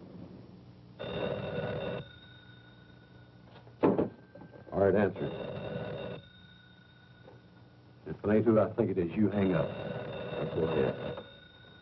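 A telephone rings loudly in repeated bursts.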